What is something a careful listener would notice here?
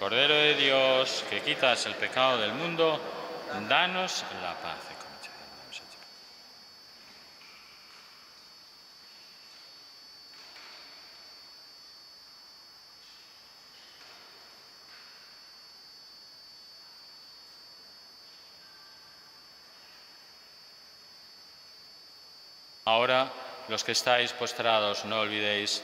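An elderly man speaks slowly and solemnly into a microphone in an echoing hall.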